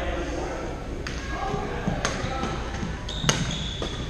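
Paddles smack a plastic ball back and forth in a large echoing hall.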